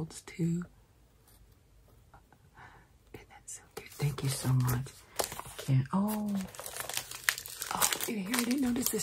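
An older woman speaks warmly and close by.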